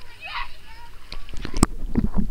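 Water splashes and sloshes close by.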